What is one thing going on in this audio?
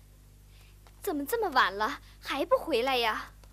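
A young woman sings in a high, wavering operatic voice.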